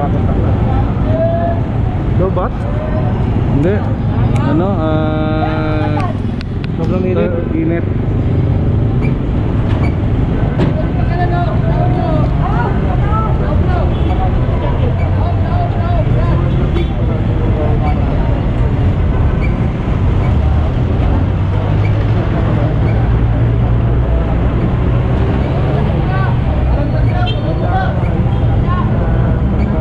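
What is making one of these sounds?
A truck engine idles nearby.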